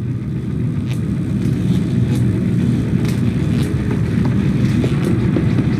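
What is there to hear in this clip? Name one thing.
Small, light footsteps patter on wooden floorboards.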